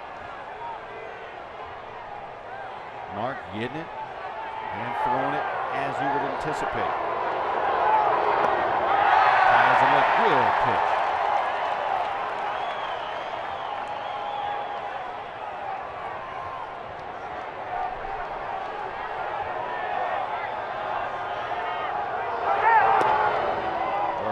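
A stadium crowd murmurs outdoors.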